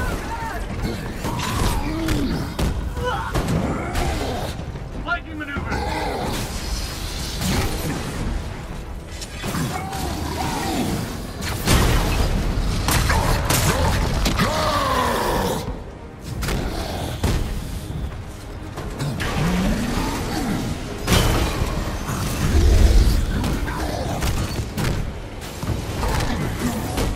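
Heavy punches thud and crash against metal.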